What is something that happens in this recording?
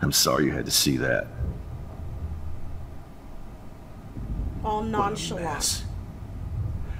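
A young woman speaks softly and sadly.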